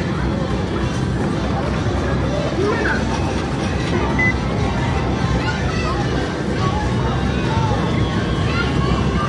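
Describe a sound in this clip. A busy arcade hums with a steady din of machines.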